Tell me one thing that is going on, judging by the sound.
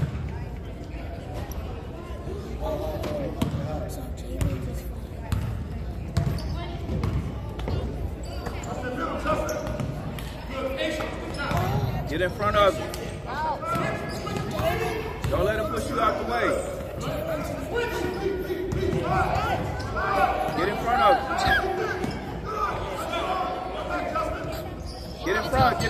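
Children and adults shout and cheer in an echoing gym.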